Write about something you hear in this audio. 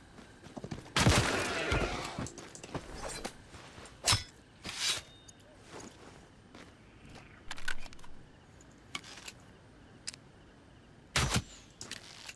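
A bow twangs as an arrow is shot.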